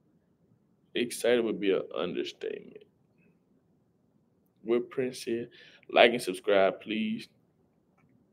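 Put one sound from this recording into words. A young man speaks casually and close up, in short bursts.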